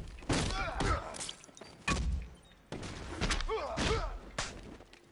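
Heavy blows land with loud, sharp thuds.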